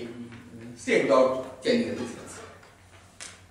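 A man speaks out loud in a large echoing hall.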